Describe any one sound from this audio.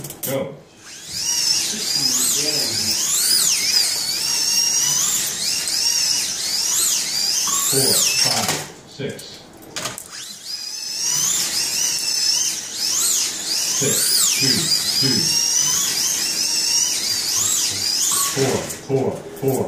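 Slot cars whine around a track, their motors rising and falling in pitch.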